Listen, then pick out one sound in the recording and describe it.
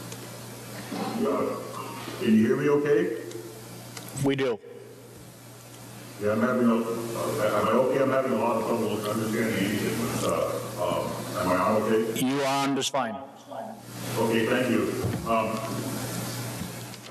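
A man speaks calmly into a microphone in a large, echoing room.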